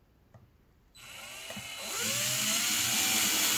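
A cordless drill whirs.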